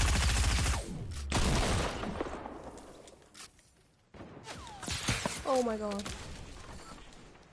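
Rapid gunfire rattles up close.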